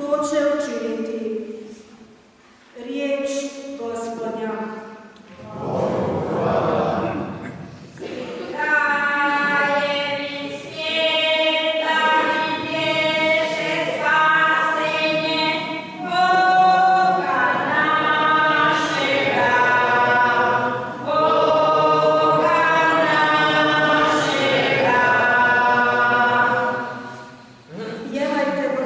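A young woman sings slowly through a microphone.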